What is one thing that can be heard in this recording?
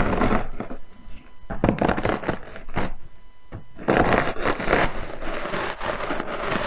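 A plastic bag crinkles under pressing hands.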